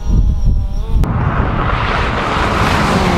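Wind rushes hard against the microphone.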